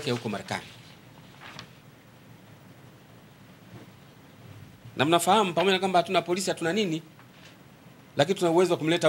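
A man reads out calmly into a microphone, with pauses.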